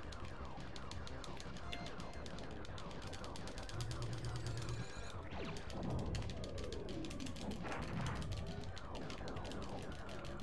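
Laser shots fire in quick bursts.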